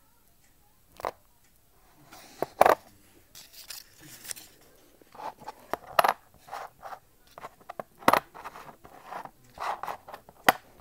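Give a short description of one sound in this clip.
Coins click and slide on cardboard.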